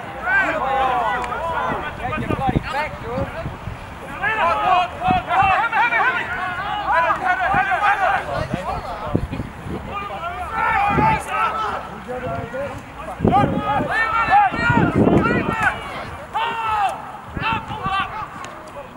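Men shout and call to each other across an open field outdoors.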